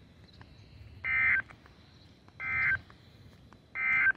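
A radio sounds a series of loud, high alert beeps.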